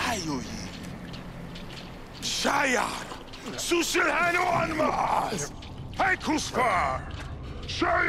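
A man speaks in a loud, theatrical voice close by.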